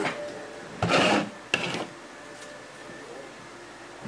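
A pen is set down on a table with a light tap.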